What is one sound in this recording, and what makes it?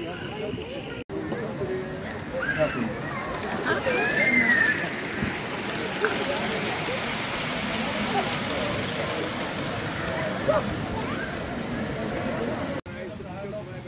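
A model train rattles and clicks along a track close by.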